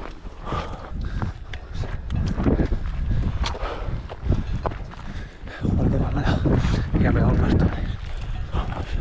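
A man speaks breathlessly and close to a microphone.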